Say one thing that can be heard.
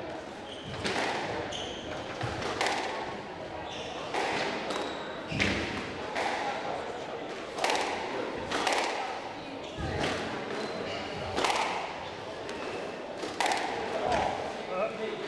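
A squash ball smacks sharply against walls and racquets in an echoing court.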